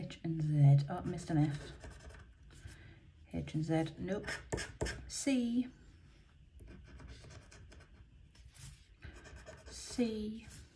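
A metal tool scrapes across a scratch card.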